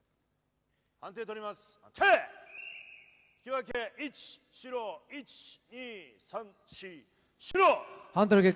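A man calls out commands loudly.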